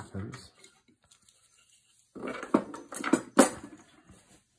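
A metal clamp clicks and knocks against wood.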